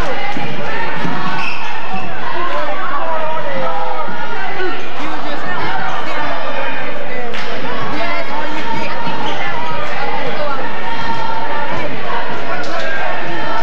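A basketball bounces on the court with dull thuds.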